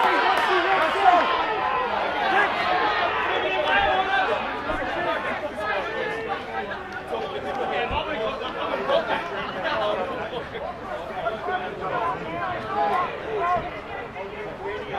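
Young men call out and talk to each other outdoors.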